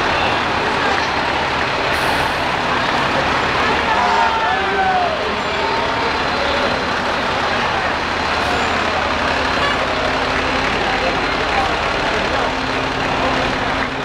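A crowd of people chatter outdoors along a street.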